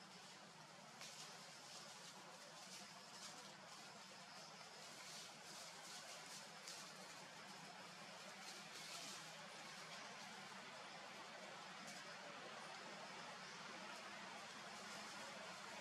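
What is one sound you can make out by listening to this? A monkey rustles through grass and leaves.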